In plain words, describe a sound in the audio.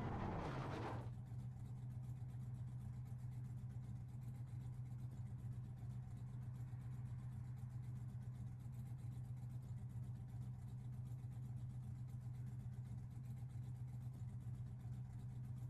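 A race car engine idles with a low steady hum.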